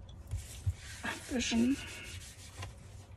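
A tissue rubs and rustles against paper.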